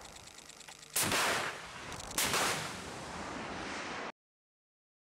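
A missile launches with a rushing whoosh that slowly fades.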